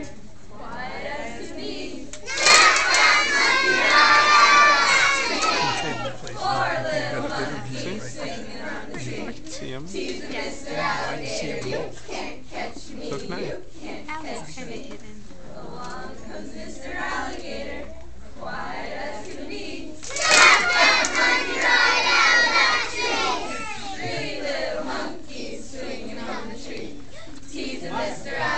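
Young children sing together loudly.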